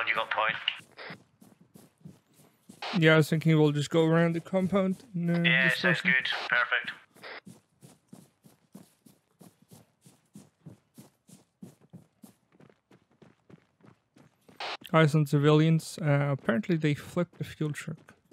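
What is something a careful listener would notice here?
Footsteps pad steadily over grass and pavement.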